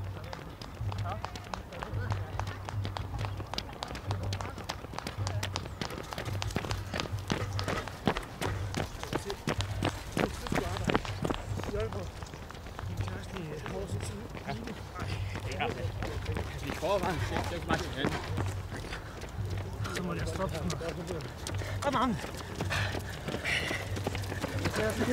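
Runners' footsteps slap steadily on asphalt.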